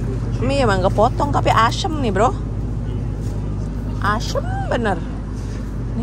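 A plastic food pack crinkles in a hand.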